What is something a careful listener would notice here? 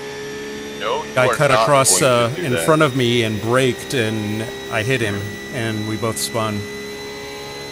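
A man talks with animation into a microphone, close by.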